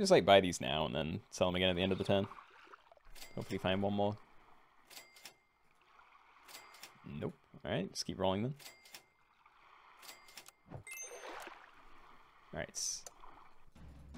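Short playful electronic chimes and pops sound now and then.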